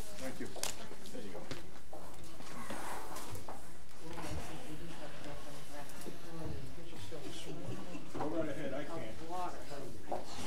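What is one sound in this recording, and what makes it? A man talks casually at a distance.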